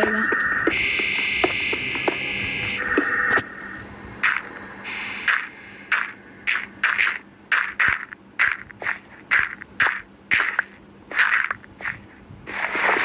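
Blocks of dirt and stone break with crunching thuds, over and over.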